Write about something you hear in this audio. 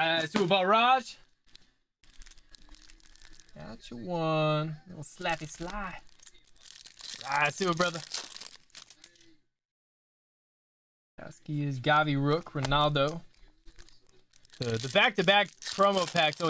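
Plastic wrappers crinkle and rustle close by.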